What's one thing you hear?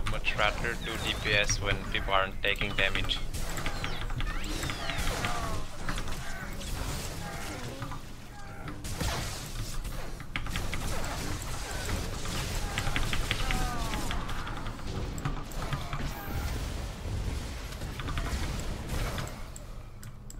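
Blasts and sword clashes ring out in a fast fight.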